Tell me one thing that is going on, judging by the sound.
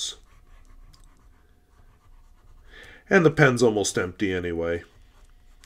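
A pen nib scratches softly on paper.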